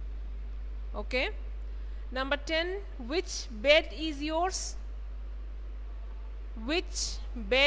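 A young woman speaks clearly into a microphone, explaining.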